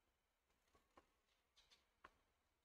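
A tennis ball bounces on a hard court a few times.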